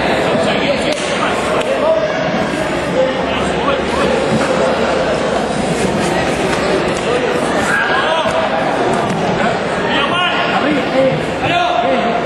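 Fighters' punches and kicks thud against each other.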